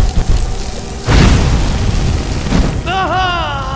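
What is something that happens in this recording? A frost spell blasts with a loud rushing hiss.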